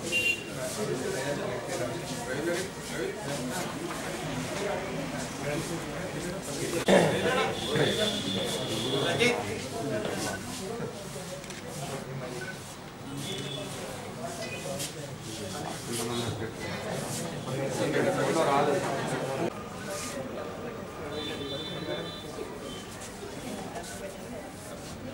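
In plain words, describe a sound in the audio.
Several men talk at once nearby in a low murmur.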